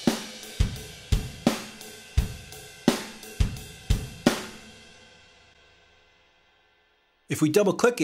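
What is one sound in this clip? Drums play a short beat of kick, snare and crashing cymbals, and the cymbals ring out and fade.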